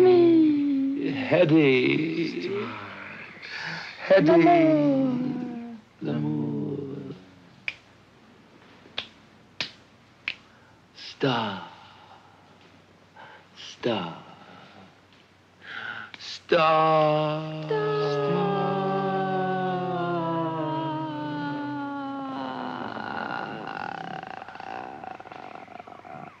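A young man sings along in a low voice.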